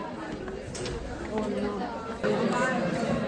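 Many young people chatter in a large room.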